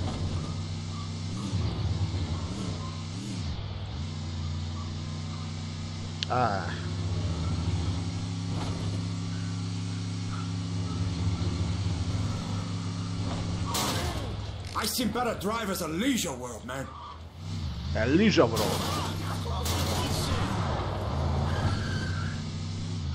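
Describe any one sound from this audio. A van engine hums steadily.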